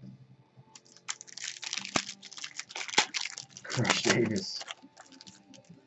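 A foil card pack crinkles as it is torn open.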